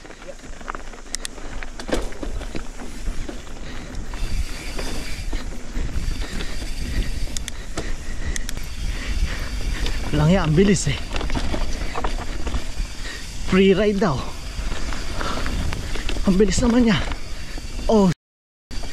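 Bicycle tyres rumble and crackle over a dirt trail.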